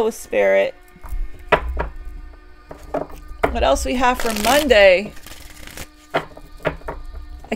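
Playing cards shuffle and flick against each other.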